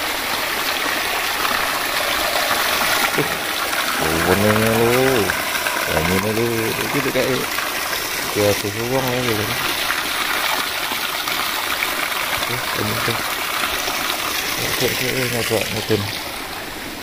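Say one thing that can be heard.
Spring water falls in a thin stream and splashes onto rocks.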